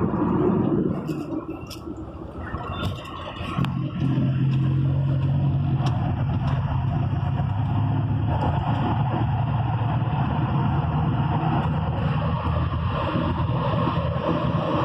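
Tyres roll on an asphalt road.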